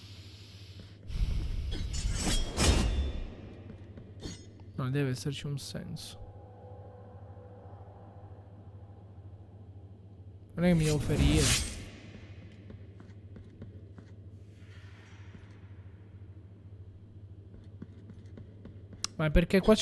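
A sword swishes through the air in quick slashes.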